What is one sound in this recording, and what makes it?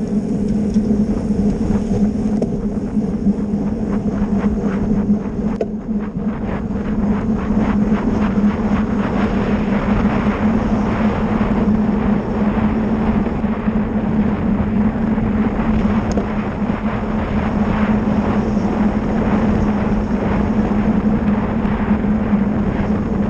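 Wind buffets loudly against a moving bicycle rider outdoors.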